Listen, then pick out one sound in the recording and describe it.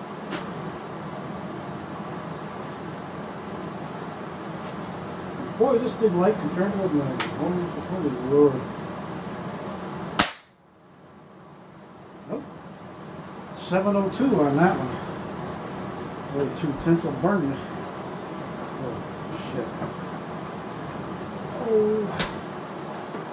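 A rifle clicks and clunks as an older man handles it.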